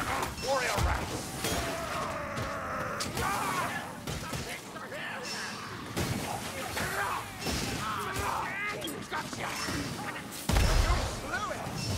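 Explosions burst with loud booms.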